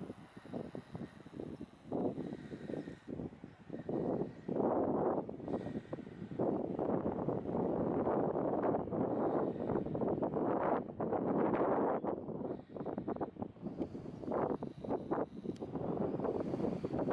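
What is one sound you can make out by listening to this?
Strong wind gusts and buffets loudly outdoors.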